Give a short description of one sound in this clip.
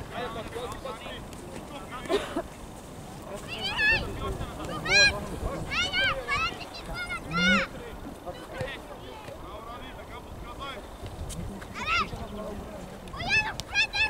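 Children shout loudly and excitedly across an open field outdoors.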